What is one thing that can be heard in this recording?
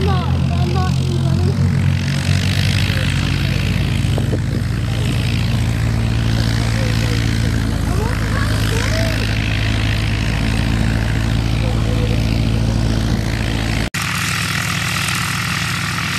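A light aircraft's propeller engine idles with a steady drone.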